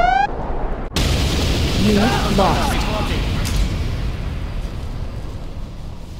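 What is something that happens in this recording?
Explosions boom and rumble loudly.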